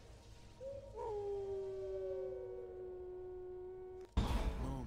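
A wolf howls long and steadily.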